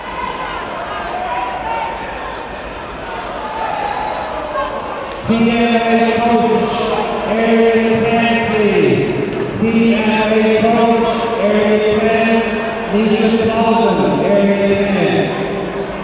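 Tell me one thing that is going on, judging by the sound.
A man calls out commands to fighters in an echoing hall.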